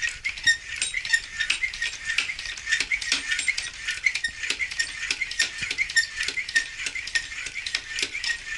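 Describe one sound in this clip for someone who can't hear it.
A floor pump pumps air into a bicycle tyre.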